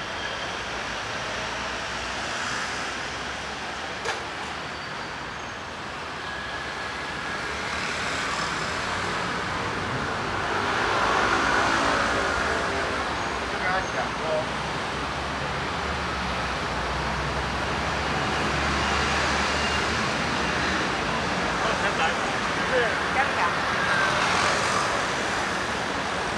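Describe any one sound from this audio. Footsteps tap on pavement.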